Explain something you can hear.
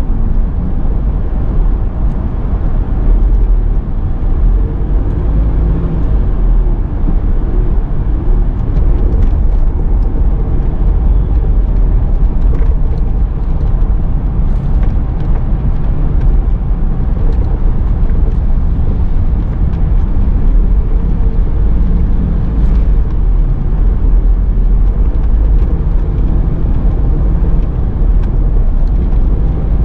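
A car engine hums steadily with a low road rumble from inside the car.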